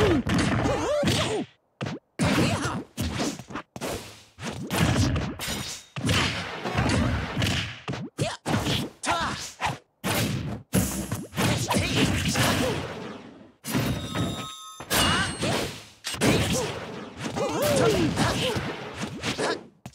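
Punches and kicks land with sharp smacks.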